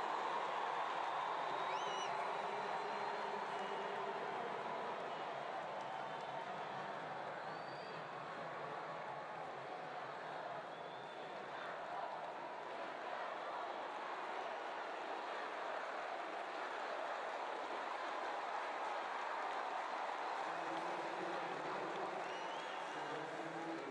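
A large crowd cheers and chatters loudly in a big echoing arena.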